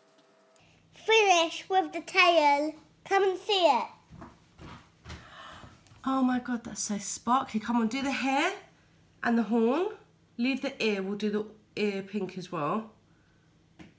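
A young girl talks with animation nearby.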